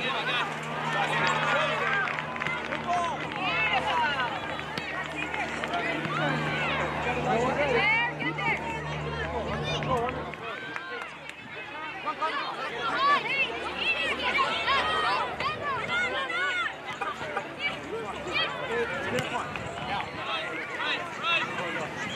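Young players shout to each other across an open field in the distance.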